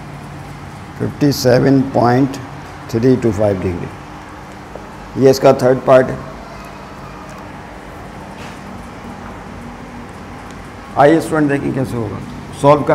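A man speaks in short bursts, explaining calmly and close by.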